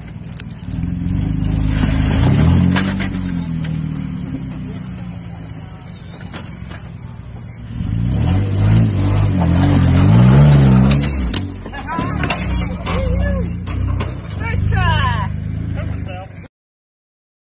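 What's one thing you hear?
An engine revs and growls, rising and falling.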